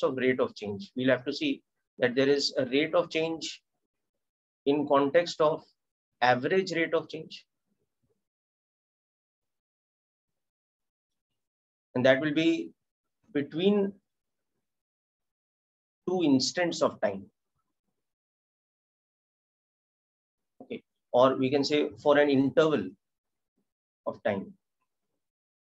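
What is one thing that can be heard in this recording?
A man speaks calmly and clearly into a microphone, explaining in short phrases with pauses.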